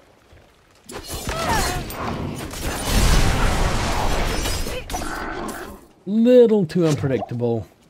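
Magic blasts burst with loud whooshes.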